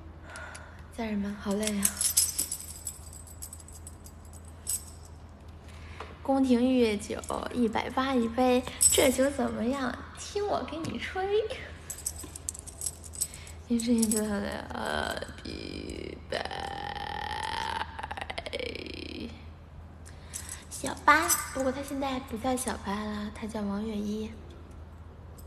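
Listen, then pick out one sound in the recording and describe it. A young woman talks close to a microphone, animated and playful, with pauses.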